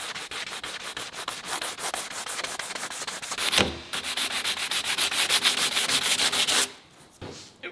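Sandpaper scrapes rapidly back and forth over a hard panel.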